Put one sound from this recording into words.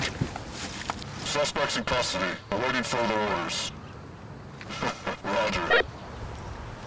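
A man speaks in a muffled voice through a gas mask.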